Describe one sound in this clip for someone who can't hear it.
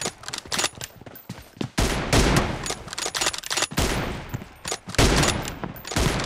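Footsteps patter on the ground as a runner dashes past.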